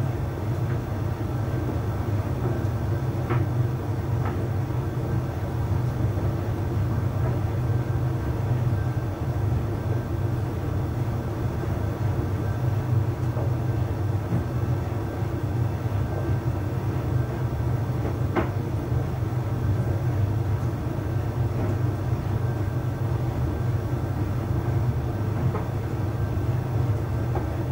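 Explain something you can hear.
A tumble dryer hums and rumbles steadily as its drum turns.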